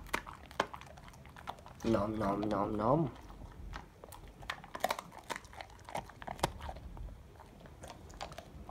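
A dog chews and gnaws on a small toy with sharp clicking bites.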